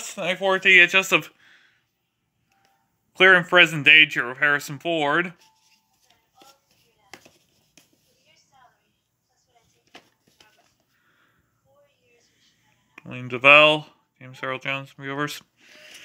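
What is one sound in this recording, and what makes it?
A plastic tape case clicks and rattles as hands handle it.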